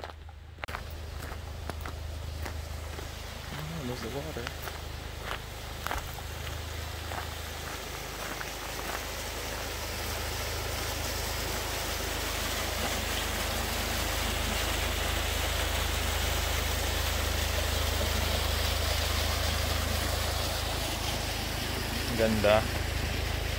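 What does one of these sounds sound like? A small waterfall splashes and rushes over rocks, growing louder.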